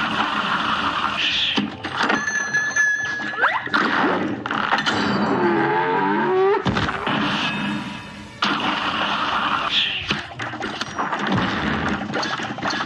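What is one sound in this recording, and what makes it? Rapid cartoonish shots pop in quick succession.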